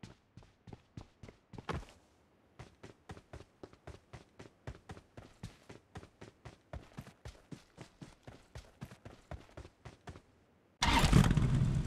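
Quick footsteps thud on dirt.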